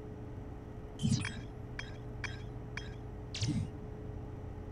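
Short electronic whooshes and soft clicks sound.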